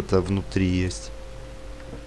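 A young man speaks briefly and with animation into a microphone.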